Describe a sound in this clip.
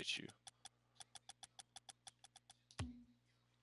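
Short menu clicks tick in a quick, even run.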